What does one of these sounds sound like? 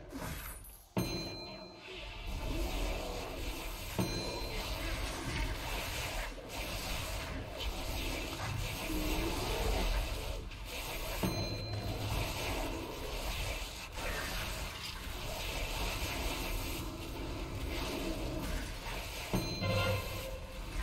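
Short bright chimes ring out now and then.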